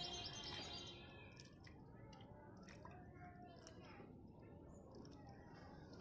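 A hand stirs thick liquid in a bucket with soft squelches.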